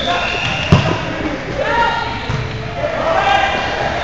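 A volleyball is struck with a sharp smack.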